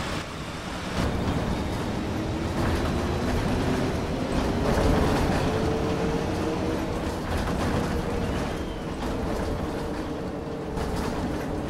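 Bus tyres rumble over cobblestones.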